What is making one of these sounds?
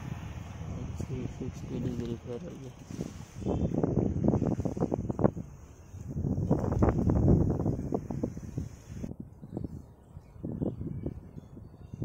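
Tree leaves rustle and thrash in the wind.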